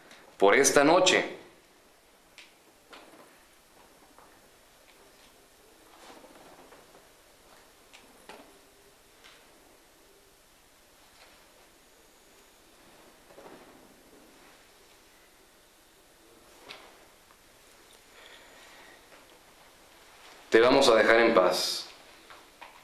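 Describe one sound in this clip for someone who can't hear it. A man speaks in short bursts close by, with long quiet pauses between.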